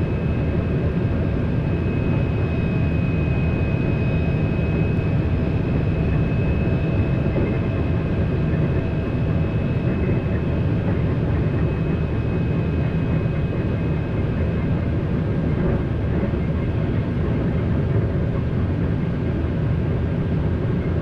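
A high-speed train rumbles steadily along the rails.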